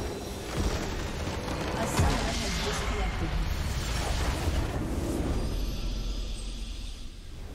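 A stone tower crumbles and collapses with a heavy rumble.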